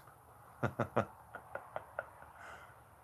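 A man laughs briefly close by.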